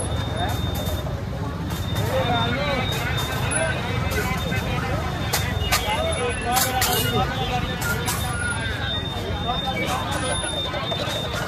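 A large crowd of men and women chatters all around outdoors.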